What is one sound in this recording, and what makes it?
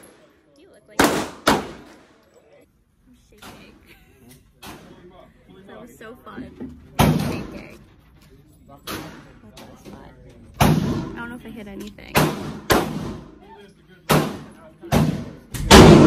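Gunshots crack sharply in an echoing room.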